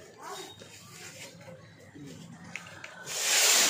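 A cloth rustles as it is pulled off a wall.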